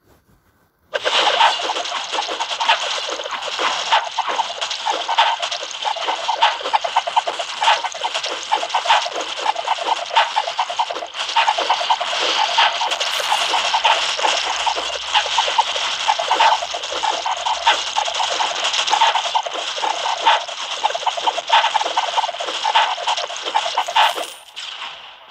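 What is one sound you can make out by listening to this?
Video game battle sound effects of rapid shots and hits play.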